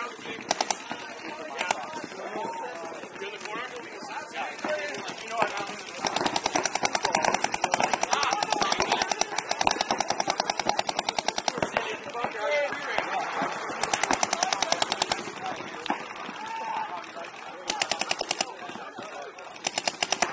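A paintball marker fires rapid bursts of shots nearby.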